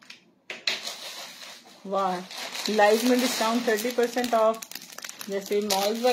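Plastic wrapping rustles and crinkles as it is handled.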